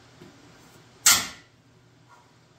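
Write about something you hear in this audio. A metal plate clanks against a steel frame.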